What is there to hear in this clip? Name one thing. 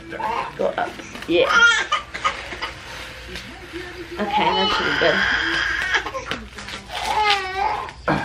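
Plastic wrap crinkles and stretches.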